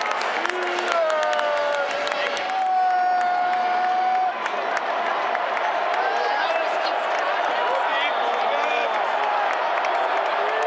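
Fans whistle and shout in the stands.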